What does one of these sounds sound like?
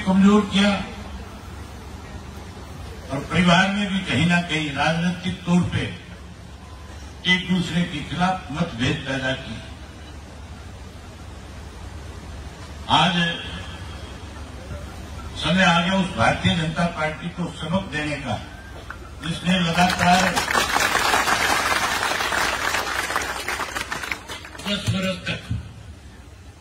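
A man speaks forcefully into a microphone over loudspeakers, with pauses.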